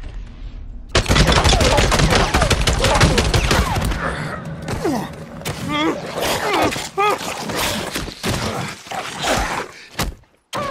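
A wolf snarls and growls while attacking.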